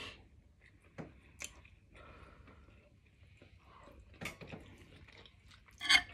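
A young woman chews food with wet, smacking sounds.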